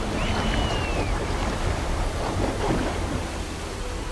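A waterfall pours and rushes steadily.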